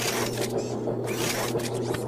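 A cartoon robot speaks with animation in a deep voice.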